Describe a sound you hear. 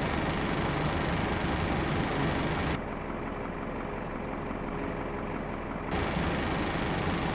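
Aircraft engines roar steadily, growing muffled for a few seconds.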